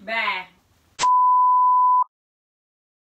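A steady high beep sounds.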